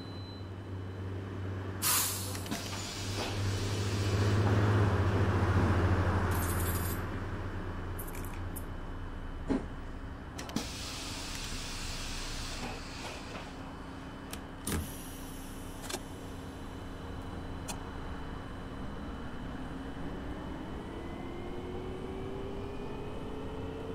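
A bus engine idles and hums steadily.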